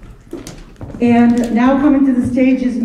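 A choir of young women sings in a large hall.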